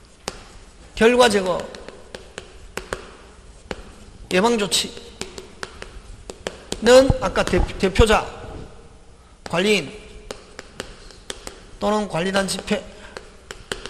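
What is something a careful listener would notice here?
A man speaks calmly through a microphone in short phrases.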